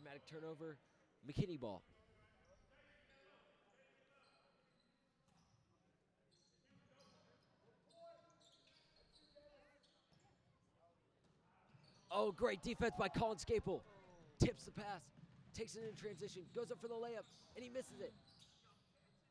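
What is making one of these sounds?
A basketball thuds as it is dribbled on a wooden floor.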